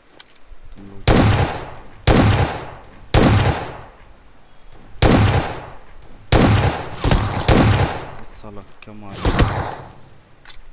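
A rifle fires loud single shots in quick succession.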